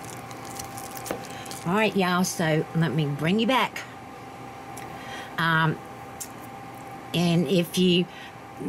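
A wooden spoon stirs and squishes a thick mash in a bowl.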